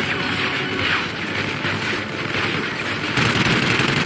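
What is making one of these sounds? A rifle fires rapid bursts of gunshots close by.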